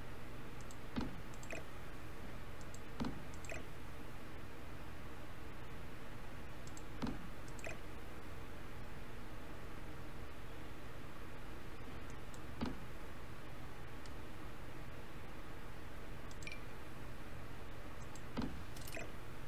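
Short soft knocks sound now and then as objects are set down.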